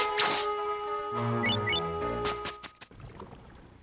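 A short electronic jingle plays.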